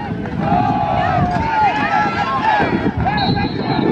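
Football players' pads and helmets clash in a tackle.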